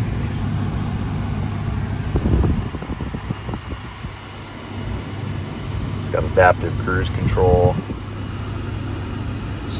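An engine idles with a low hum.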